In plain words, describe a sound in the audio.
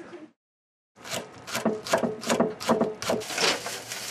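A knife chops vegetables on a cutting board with quick knocks.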